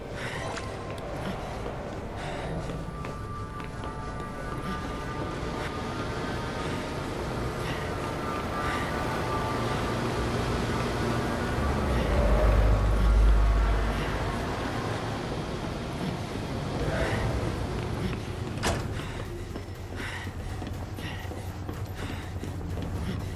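Footsteps clang on a metal floor.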